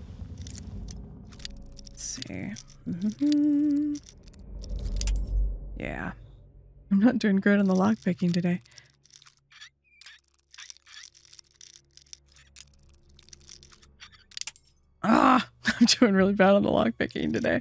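A metal pick scrapes and clicks inside a lock.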